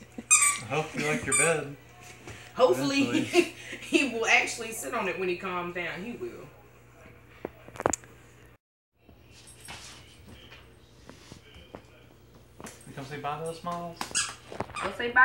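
A woman talks to a dog in a lively, high voice nearby.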